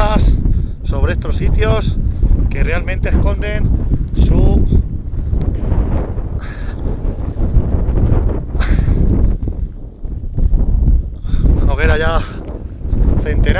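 Wind blows outdoors, rumbling and buffeting.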